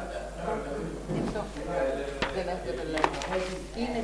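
Papers rustle and flap close by.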